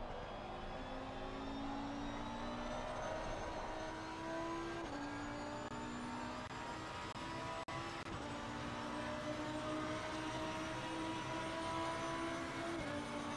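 A race car engine roars steadily, rising in pitch as it accelerates and dropping briefly at each gear change.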